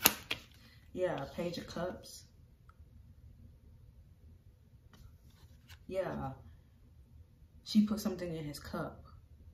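A playing card is picked up from a table with a soft rustle.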